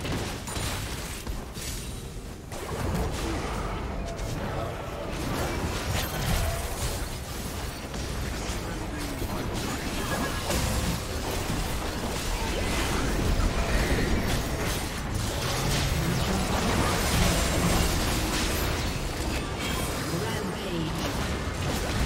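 Magic blasts, whooshes and hits crackle in a hectic video game battle.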